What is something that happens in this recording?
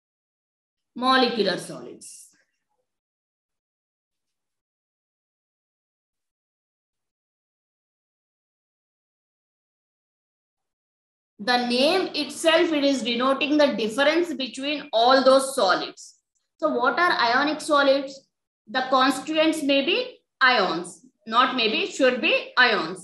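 A woman speaks calmly, as if teaching, heard through an online call.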